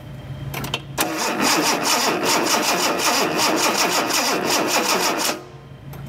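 A car engine cranks over with a fast, rhythmic churning, then stops.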